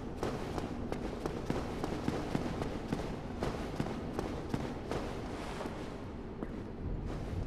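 Armoured footsteps clank rapidly on stone.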